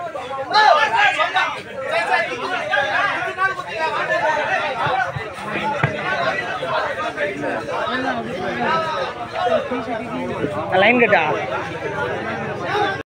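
A crowd of young men talks and shouts excitedly close by, outdoors.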